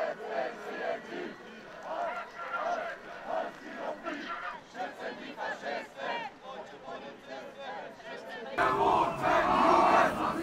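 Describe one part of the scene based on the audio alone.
A large crowd chants and shouts outdoors.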